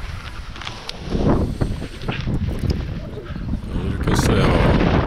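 Feet crunch on frozen snow during a running launch.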